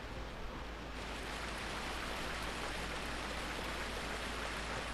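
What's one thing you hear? Footsteps splash and slosh through shallow water.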